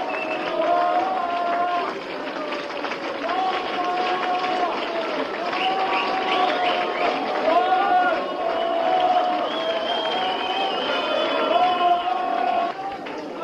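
A young woman sings loudly into a microphone.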